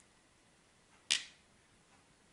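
A small wooden game piece taps down onto a board.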